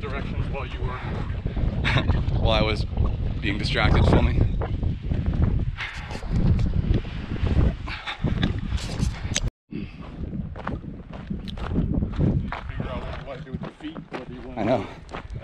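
A man talks breathlessly, close to the microphone.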